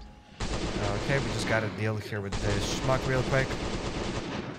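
A man speaks with animation close to a headset microphone.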